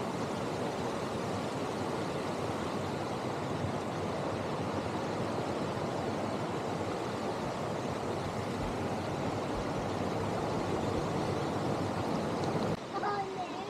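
A waterfall splashes and rushes steadily nearby.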